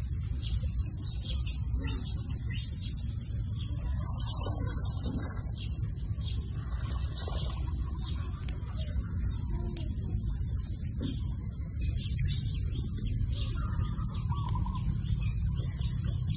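Leafy stems rustle and snap as hands pick them.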